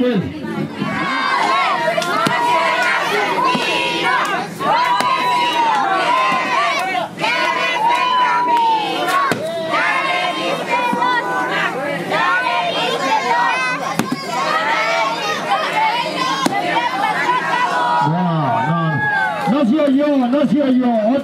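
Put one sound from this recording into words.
Children chatter and shout excitedly nearby.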